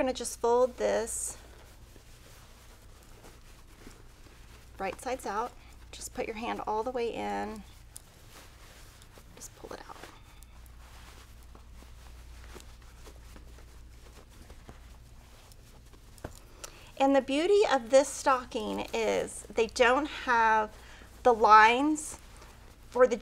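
Fabric rustles softly as it is handled and turned.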